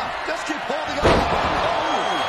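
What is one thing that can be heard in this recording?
A heavy body slams down onto a wrestling mat with a thud.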